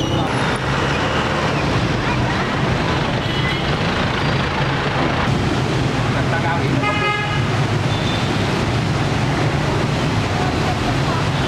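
Rain patters steadily on a wet street and a parked car.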